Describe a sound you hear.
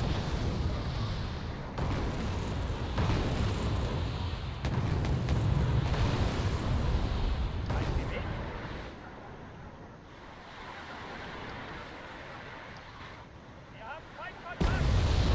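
Distant explosions rumble in a battle.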